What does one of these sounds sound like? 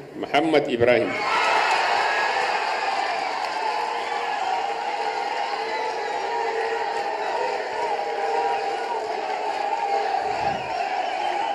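A large crowd cheers and ululates loudly outdoors.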